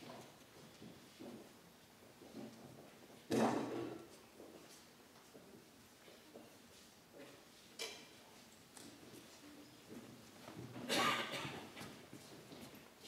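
Metal cups clink softly against a table.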